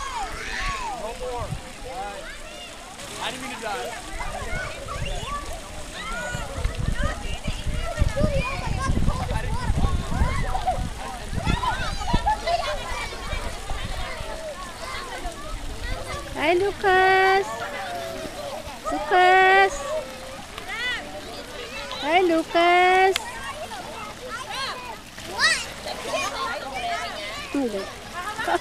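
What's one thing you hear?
Several adults chat and laugh nearby outdoors.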